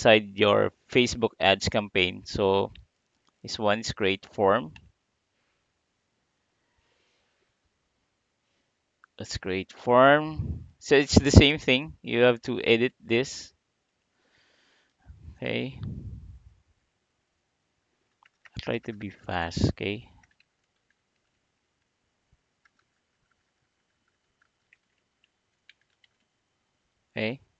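A man talks calmly and close to a microphone, in short bursts with pauses.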